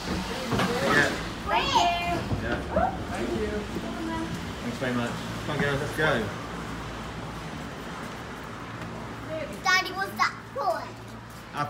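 Young children talk and call out excitedly close by.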